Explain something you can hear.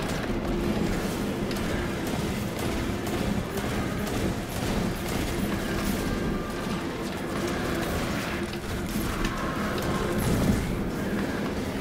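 Explosions and energy blasts boom.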